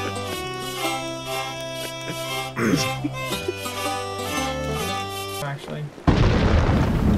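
A concertina plays a lively tune.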